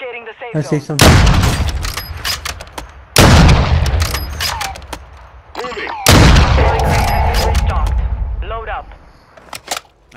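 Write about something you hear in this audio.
A rifle fires loud shots that boom and echo away.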